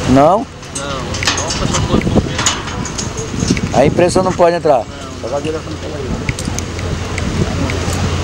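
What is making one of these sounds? Metal clinks and taps against an iron gate.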